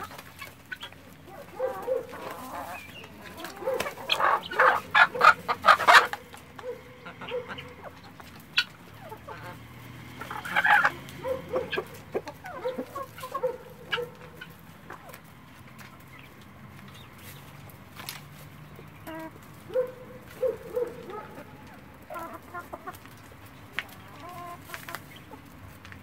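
Guinea fowl chatter with loud, rapid, harsh calls close by.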